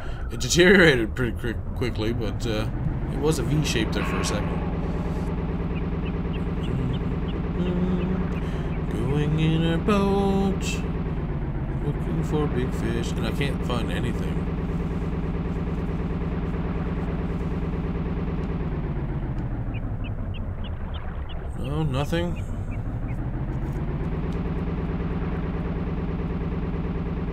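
A boat motor hums steadily in a video game.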